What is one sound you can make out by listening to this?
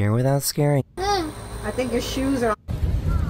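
A young girl speaks.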